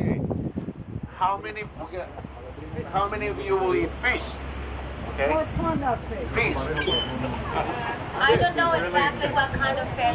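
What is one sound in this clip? A man speaks loudly to a group, close by.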